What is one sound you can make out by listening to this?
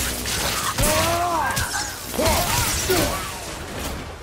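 A monster screeches and shrieks loudly.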